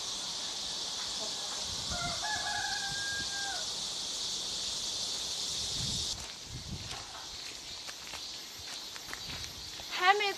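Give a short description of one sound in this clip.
Footsteps crunch slowly on a dirt path outdoors.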